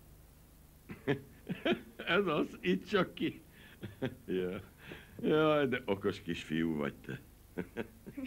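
A middle-aged man laughs and talks with animation nearby.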